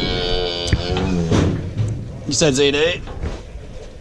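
A calf moos loudly close by.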